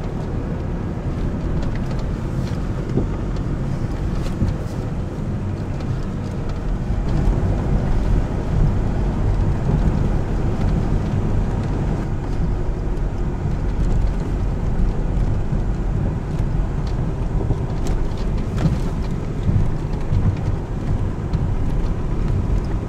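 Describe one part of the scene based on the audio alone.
A vehicle engine rumbles steadily at low speed.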